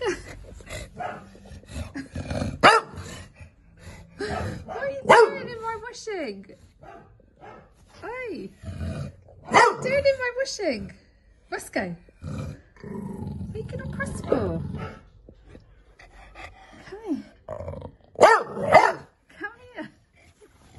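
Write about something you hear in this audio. A dog whines and grumbles in long wavering moans close by.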